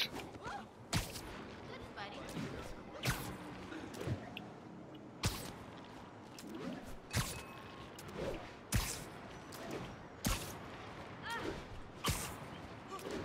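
A web shooter fires with sharp, short thwips again and again.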